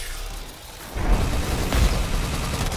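Energy blasts crackle and explode loudly.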